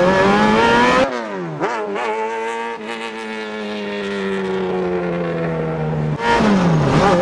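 A car engine drones from a distance as the car drifts around a track.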